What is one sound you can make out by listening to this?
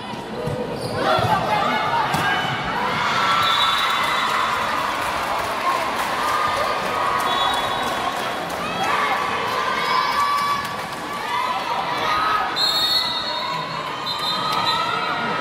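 Young women players shout and call to each other.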